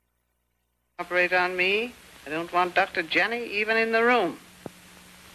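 An elderly woman speaks in a weak, strained voice.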